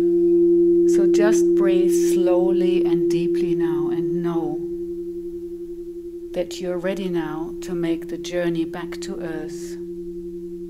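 A woman sings softly nearby.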